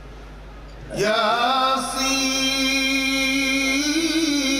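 An elderly man chants loudly through a microphone and loudspeakers.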